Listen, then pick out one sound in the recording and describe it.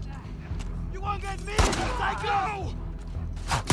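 A man shouts angrily.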